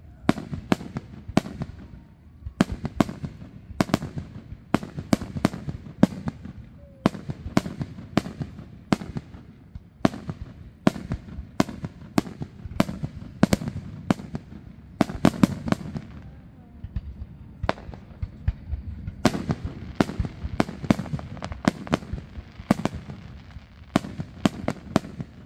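Fireworks crackle after bursting.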